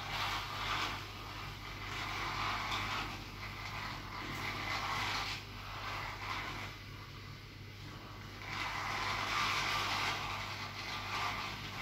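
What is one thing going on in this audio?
A handheld massage device buzzes against a man's neck.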